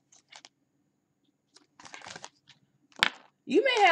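A hand picks up a stack of cards with a soft rustle.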